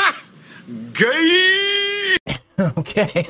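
A man shouts loudly with a long drawn-out cry.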